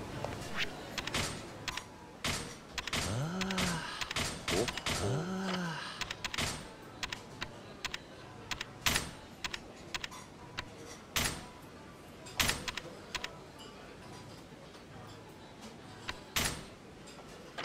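Short electronic menu clicks tick one after another.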